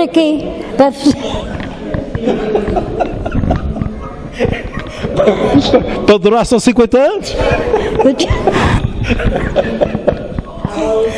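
A middle-aged man talks and laughs heartily into a microphone.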